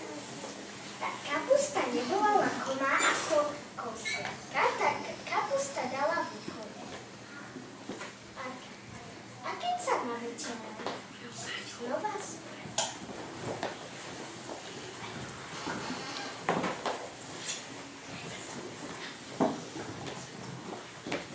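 Young children talk and laugh nearby.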